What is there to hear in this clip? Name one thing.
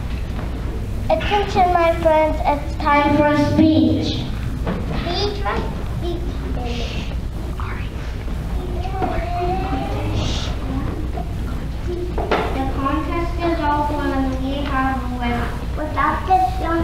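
A group of young children sings together in a large hall.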